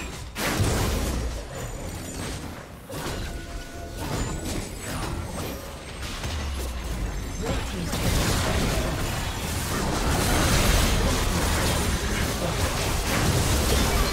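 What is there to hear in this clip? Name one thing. Spell effects crackle and burst in a game battle.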